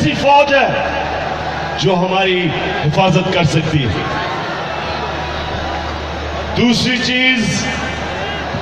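A man shouts through loudspeakers to a crowd, echoing outdoors.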